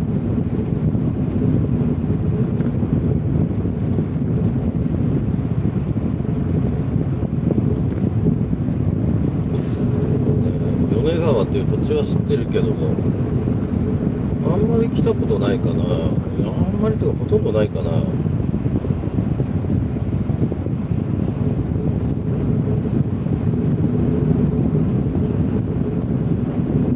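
Tyres rumble steadily on a paved road.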